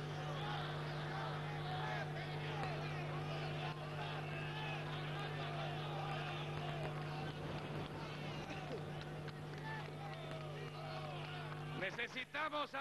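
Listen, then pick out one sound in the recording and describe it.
A large crowd cheers and chants loudly.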